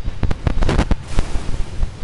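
An explosion bursts with a loud boom.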